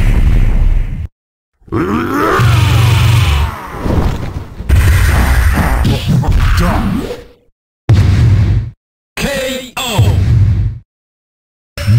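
Heavy punches and blasts thud and crash in a video game.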